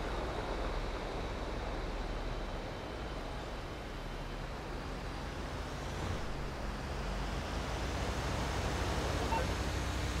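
A truck rumbles past close by.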